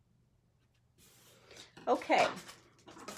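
Paper rustles and slides across a table.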